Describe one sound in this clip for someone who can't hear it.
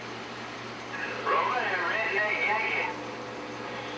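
A voice crackles briefly through a radio speaker amid static.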